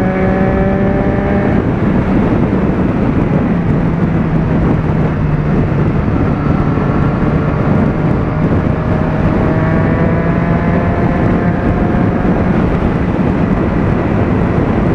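A motorcycle engine drones steadily at speed, shifting in pitch.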